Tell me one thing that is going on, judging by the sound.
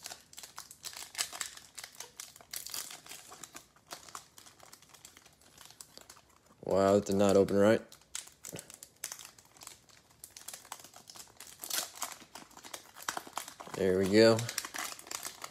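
A foil pack tears open.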